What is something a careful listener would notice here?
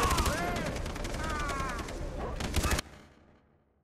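Gunshots fire in rapid bursts.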